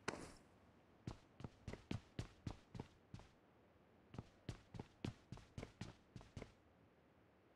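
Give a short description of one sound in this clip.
Footsteps thud quickly on a hard floor and stairs.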